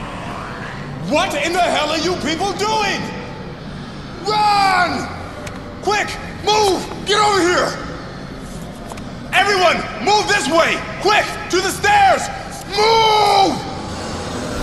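A young man shouts in alarm.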